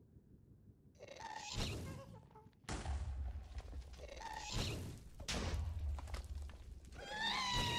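A creature wails with high, eerie cries, again and again.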